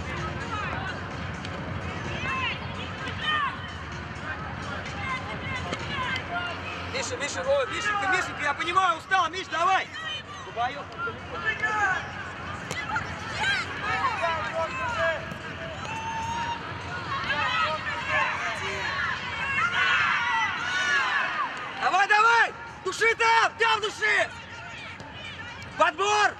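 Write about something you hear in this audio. Children shout and call out across an open outdoor field.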